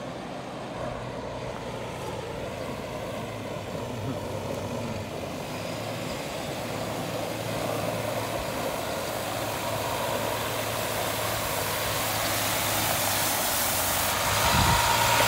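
Water sprays and hisses onto the ground, growing louder as it nears.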